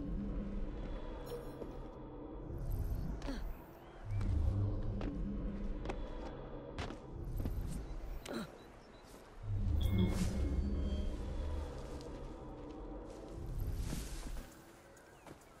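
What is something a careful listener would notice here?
Quick footsteps and thuds land on stone as someone climbs and jumps.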